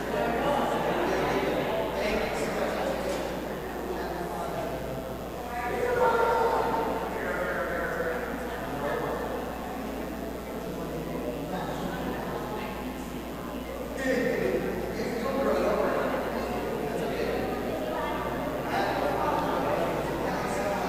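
A group of people sings together in a large echoing hall.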